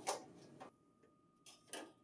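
A metal panel scrapes as it slides into place.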